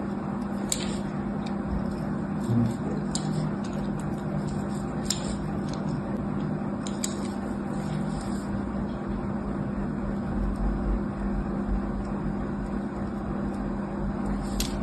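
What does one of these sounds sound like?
A blade scratches and scrapes into a bar of soap with crisp little clicks.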